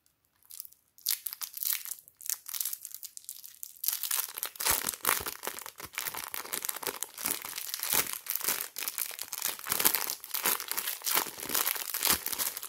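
A plastic wrapper crinkles and rustles as fingers peel it away.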